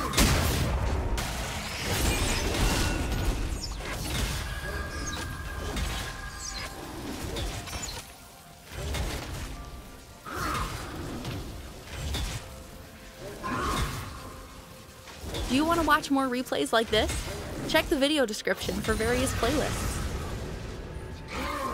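Blows and hits thud in a video game fight.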